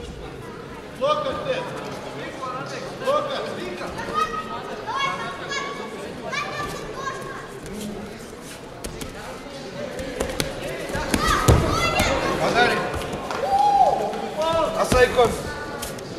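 Spectators in a large hall shout and cheer loudly.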